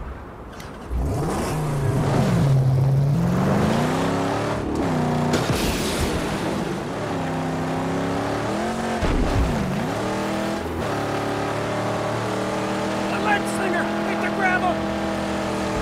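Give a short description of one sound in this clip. A car engine roars, revving up and down as it drives.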